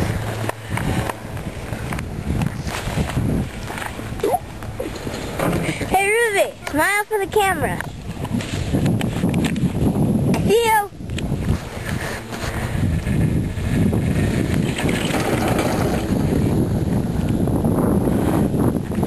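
Wind rushes steadily against the microphone outdoors.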